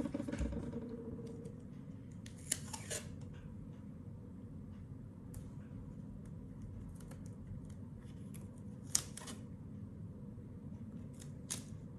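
Paper tape crinkles and rustles as it is peeled and pressed down.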